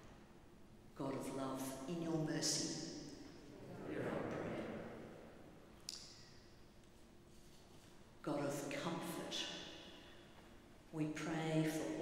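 A man chants in a large echoing hall.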